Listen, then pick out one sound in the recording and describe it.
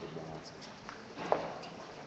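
Footsteps pass close by.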